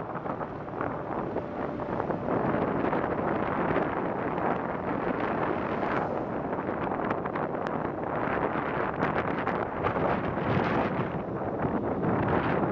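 Wind rushes loudly and steadily over a moving microphone outdoors.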